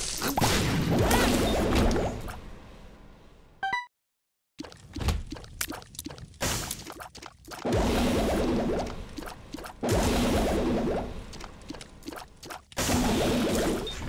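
A video game laser beam blasts with a loud buzzing roar.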